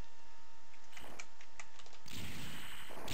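Rapid blaster shots fire in quick bursts.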